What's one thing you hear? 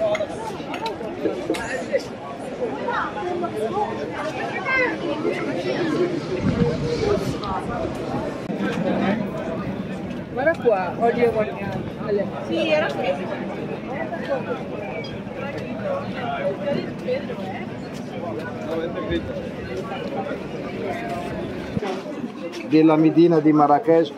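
A busy crowd chatters and murmurs outdoors.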